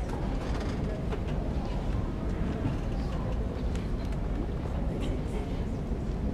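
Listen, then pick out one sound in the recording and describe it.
A mixed choir sings together in a large echoing hall.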